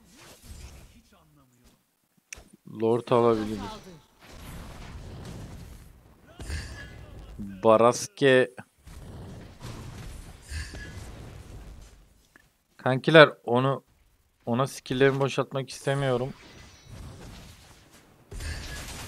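Game spells whoosh and crackle in bursts.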